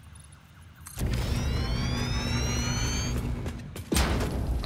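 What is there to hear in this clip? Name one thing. A blast booms with a long crackling rumble.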